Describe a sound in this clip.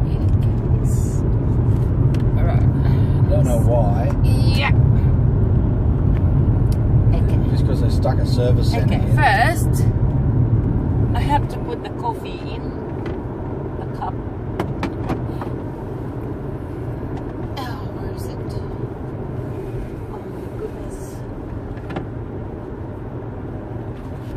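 A car engine hums with road rumble from inside the car.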